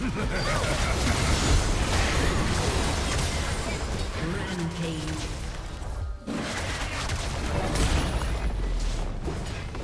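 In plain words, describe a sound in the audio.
Magic blasts and crackling spell effects burst in quick succession.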